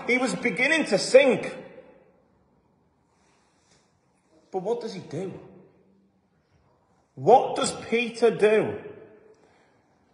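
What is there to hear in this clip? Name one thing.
A man speaks with animation in short bursts with pauses, close to the microphone, in an echoing hall.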